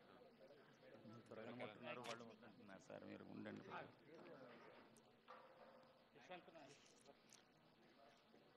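Several men and women chatter in the background.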